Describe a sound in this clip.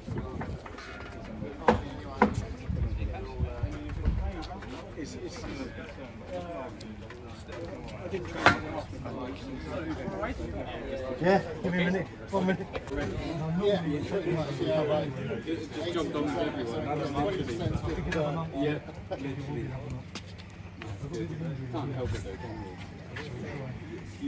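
A crowd of men talks and cheers nearby outdoors.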